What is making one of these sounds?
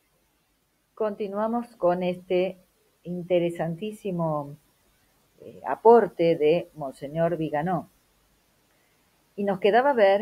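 A woman speaks calmly into a microphone, reading out.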